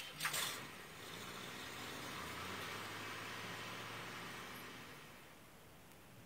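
A van's engine hums as the van drives slowly away.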